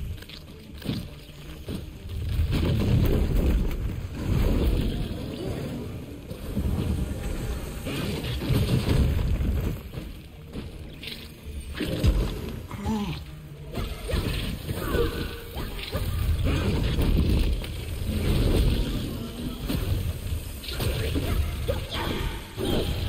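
Game battle sounds of blows and magic blasts crash and rumble.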